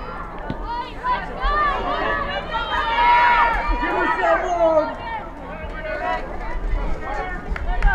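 Young female players shout and call to each other across an open field.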